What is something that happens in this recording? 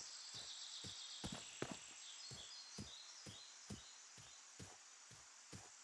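Footsteps thud steadily on grass and soft ground.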